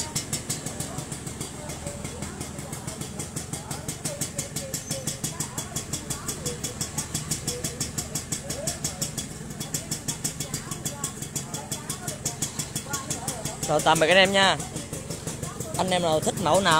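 A motorcycle engine idles nearby with a steady, rapid putter.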